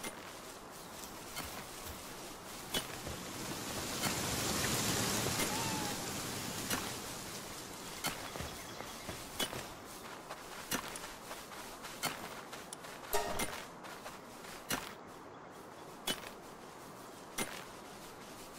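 Footsteps tread slowly on grass and dirt.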